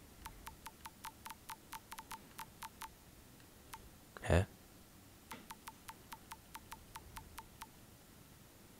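Short soft clicks tick quickly, one after another, as a menu selection moves.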